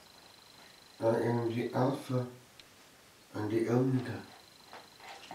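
An older man speaks calmly and slowly.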